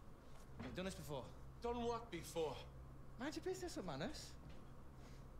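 A man answers tersely.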